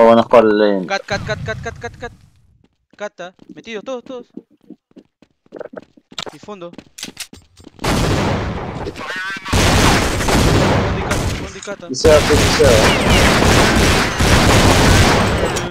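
A flashbang grenade bursts with a sharp bang.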